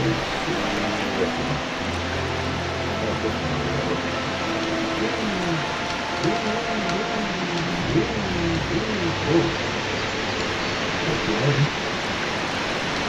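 An elderly man talks calmly through a microphone.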